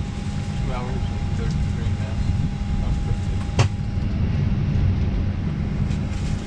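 Jet engines drone with a steady, low roar.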